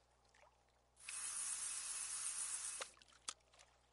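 A fishing line whizzes out as a rod casts.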